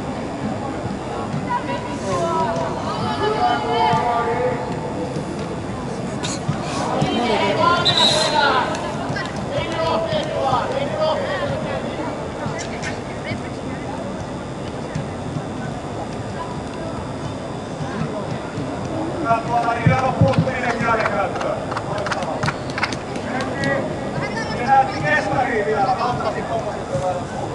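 Young women's voices call out and chatter nearby in a large echoing hall.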